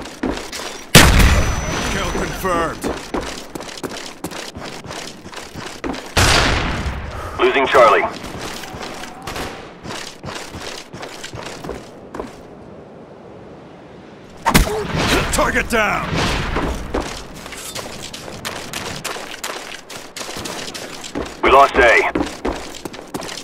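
Rapid gunshots crack again and again.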